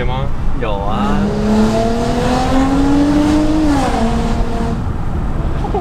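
A car engine revs up, rising in pitch, then drops.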